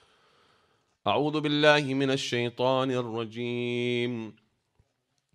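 A young man chants loudly into a microphone in a melodic, mournful voice.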